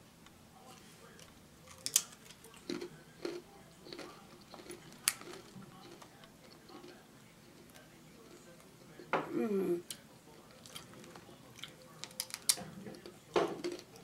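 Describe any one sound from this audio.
A woman crunches a cracker while chewing close by.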